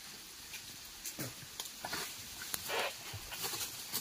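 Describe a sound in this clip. Footsteps crunch and rustle through dry leaves and brush nearby.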